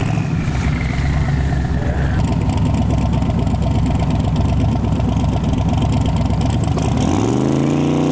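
A race car engine rumbles steadily as the car rolls forward.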